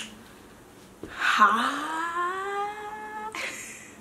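A young woman speaks close by with rising excitement.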